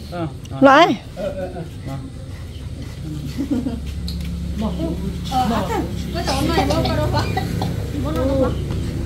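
Girls and young women talk and chatter nearby.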